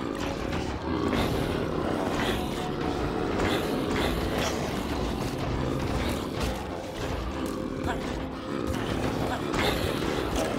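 Zombies groan in a low, rasping way.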